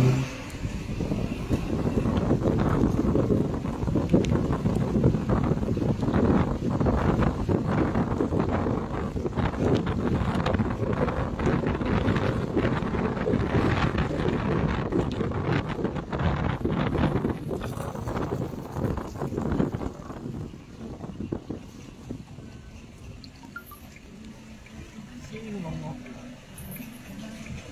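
Tyres hiss and rumble on a wet road as a car drives along.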